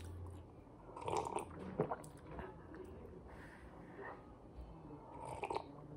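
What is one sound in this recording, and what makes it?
A woman sips from a mug.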